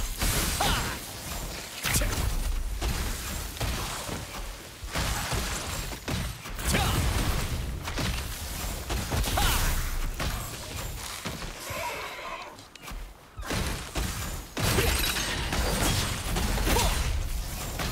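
Magic spells burst and crackle loudly.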